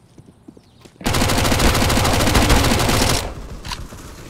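A submachine gun fires a rapid burst of shots nearby.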